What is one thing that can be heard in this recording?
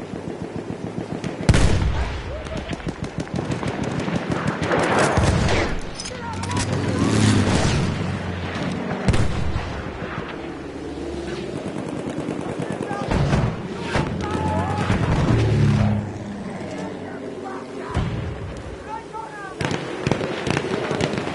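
Rapid gunfire crackles all around in a loud battle.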